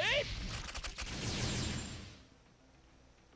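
A magic blast whooshes and fades.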